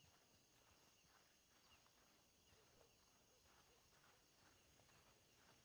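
Footsteps thud softly on a dirt street.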